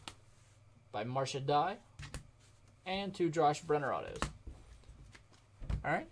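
Plastic card sleeves rustle and click in hands.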